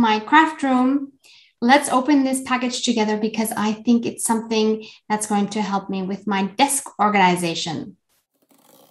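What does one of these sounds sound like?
A young woman talks calmly and cheerfully, close to a microphone.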